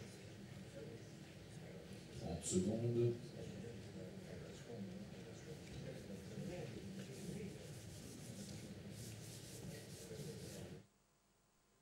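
An audience murmurs and chatters quietly in a large hall.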